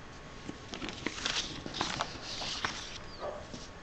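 Paper rustles as a sheet is moved.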